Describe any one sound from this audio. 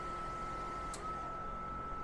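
A relay inside a portable power unit clicks once, softly.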